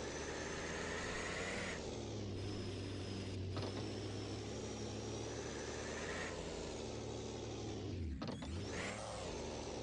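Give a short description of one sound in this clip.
A truck engine roars and revs as it climbs rough ground.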